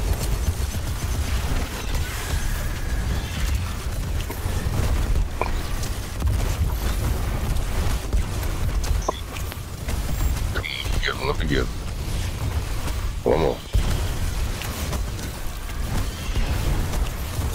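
Guns fire rapidly in a video game.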